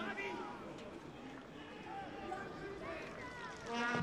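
A large crowd cheers in an open stadium.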